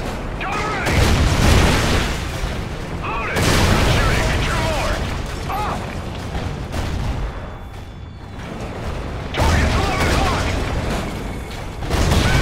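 Explosions roar loudly.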